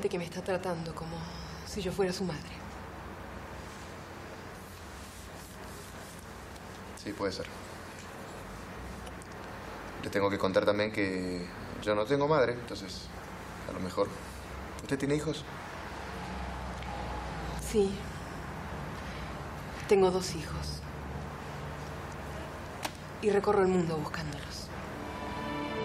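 A woman speaks calmly and softly.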